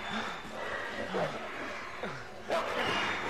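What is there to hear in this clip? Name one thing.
A beast snarls and growls up close.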